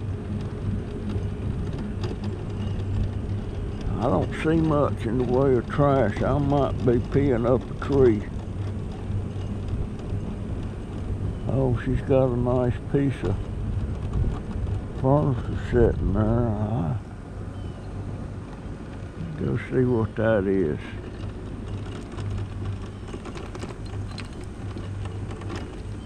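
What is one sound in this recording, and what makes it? An electric scooter motor hums steadily.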